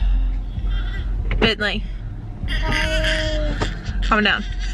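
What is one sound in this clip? A baby cries.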